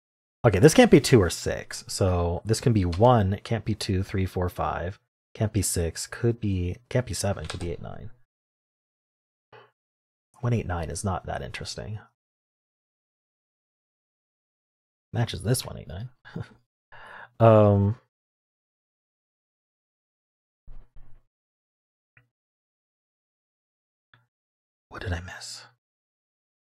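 A man talks calmly and with animation into a close microphone.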